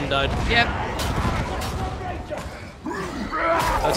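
A heavy blade swings and hacks into enemies.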